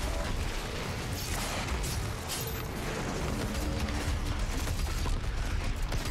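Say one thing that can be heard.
Monsters roar and snarl.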